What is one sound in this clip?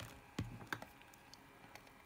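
Metal pliers click against a small circuit board.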